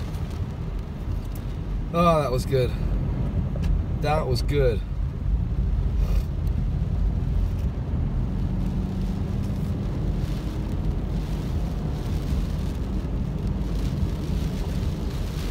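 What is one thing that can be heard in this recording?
Windscreen wipers sweep back and forth.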